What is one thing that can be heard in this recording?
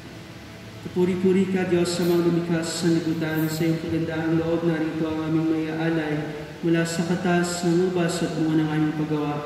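A man sings through a microphone in a large echoing hall.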